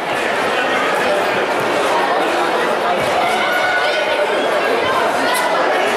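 A crowd of children and adults chatters throughout a large echoing hall.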